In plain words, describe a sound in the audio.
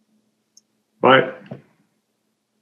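Another man speaks briefly over an online call.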